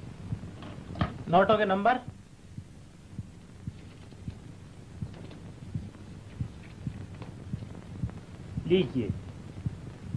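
A man speaks loudly in short bursts.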